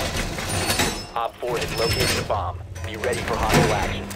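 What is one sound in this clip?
A metal barricade panel clanks as it is pushed into place.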